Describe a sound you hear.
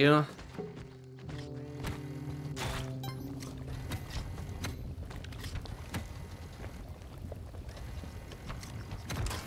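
Video game sound effects chime and whoosh.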